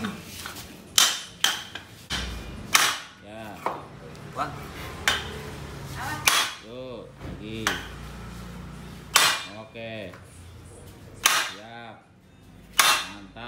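A hammer bangs sharply on metal, again and again.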